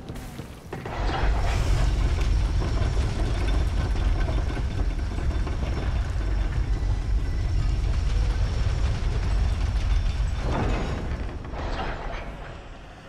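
A wooden lift rumbles and creaks steadily as it rises.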